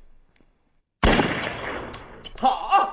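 A pistol fires a single loud shot that echoes.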